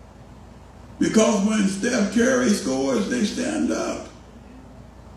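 A man speaks loudly into a microphone in an echoing hall.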